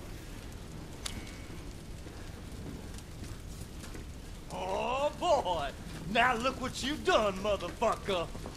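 Fire crackles and roars steadily.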